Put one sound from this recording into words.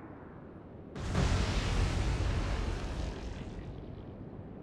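Shells crash into the sea with heavy splashes.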